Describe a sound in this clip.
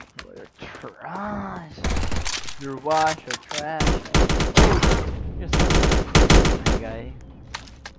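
A young man shouts excitedly close to a microphone.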